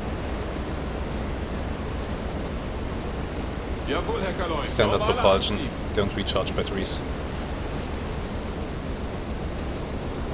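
Rough sea waves wash and rumble steadily against a boat's hull.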